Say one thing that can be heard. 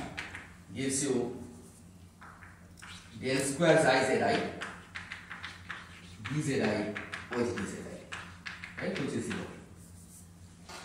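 A man speaks calmly as he lectures in an echoing room.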